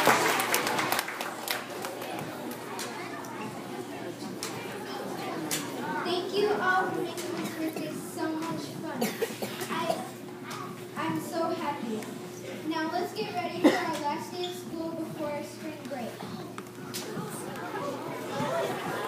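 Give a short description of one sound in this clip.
Children chatter and talk among themselves in an echoing hall.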